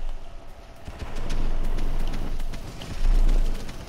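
A flamethrower roars in a burst of fire.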